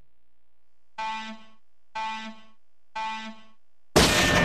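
Three short electronic beeps count down.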